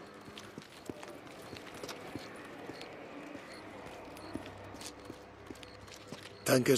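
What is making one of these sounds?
Footsteps walk over pavement.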